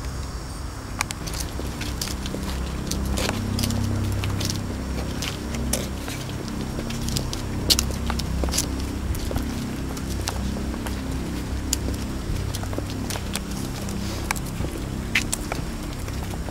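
Many footsteps crunch and shuffle on a path as a crowd walks along.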